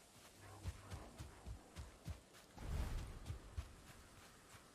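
Footsteps tread softly over forest ground.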